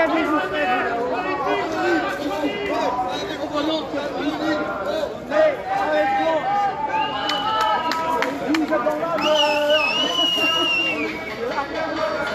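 A crowd of men and women talks and shouts loudly nearby outdoors.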